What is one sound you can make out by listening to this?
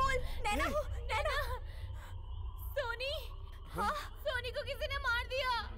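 A young woman sobs and wails close by.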